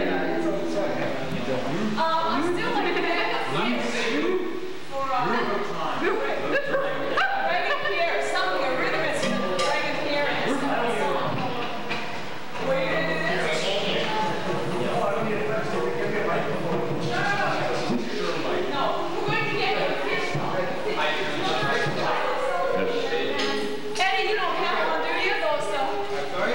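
A live band plays upbeat music.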